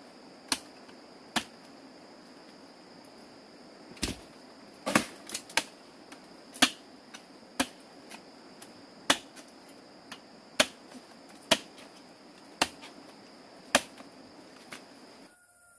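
Small fruits snap off a bunch with sharp, repeated clicks.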